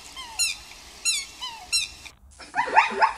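Geese honk in short bursts.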